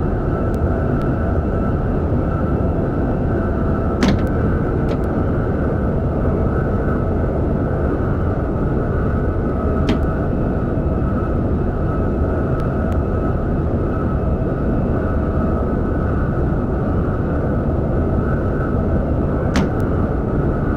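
A high-speed train hums and rumbles steadily along the rails.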